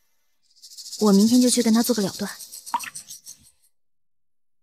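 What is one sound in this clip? A young woman speaks quietly and sadly up close.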